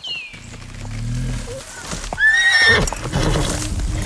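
A horse's hooves thud slowly on soft ground.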